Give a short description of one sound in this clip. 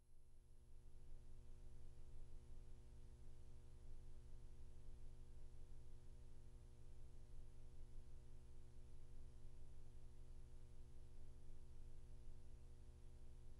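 A needle hisses and crackles softly in a record's grooves.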